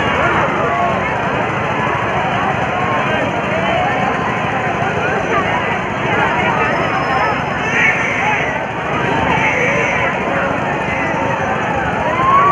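A crowd of children and young people chatters and shouts on a spinning fairground ride.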